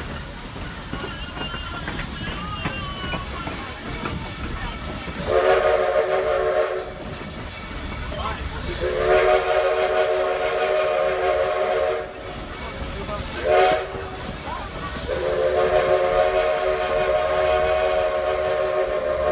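A train rumbles and clatters along the tracks.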